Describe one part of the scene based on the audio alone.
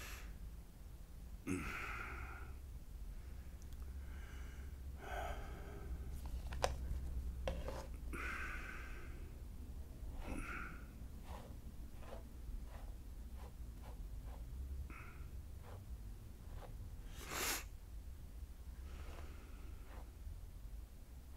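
A towel rubs against hair in short, brisk strokes.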